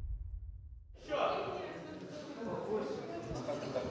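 A crowd of people chatters in an echoing hall.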